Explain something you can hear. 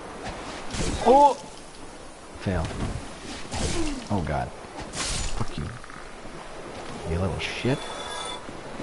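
A large creature shrieks and groans.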